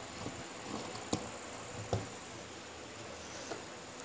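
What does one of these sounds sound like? Scissors are set down on a table with a soft clack.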